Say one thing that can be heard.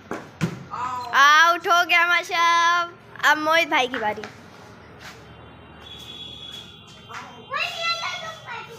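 A young boy shouts excitedly nearby.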